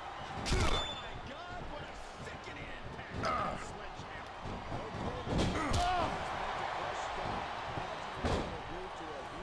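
Heavy thuds of bodies hit a wrestling mat.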